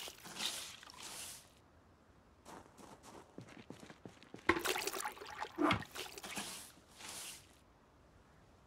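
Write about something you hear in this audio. A broom sweeps a hard floor with short, brushing swishes.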